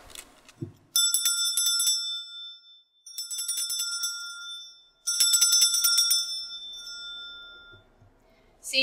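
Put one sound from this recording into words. A handbell rings in short bursts.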